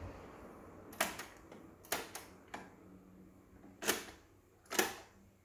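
Plastic buttons on a cassette player click loudly as they are pressed.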